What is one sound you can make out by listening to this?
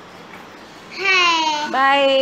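A young child speaks loudly and brightly close by.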